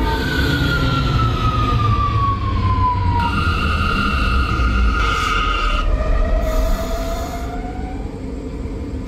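A subway train's electric motors whine, falling in pitch as the train slows.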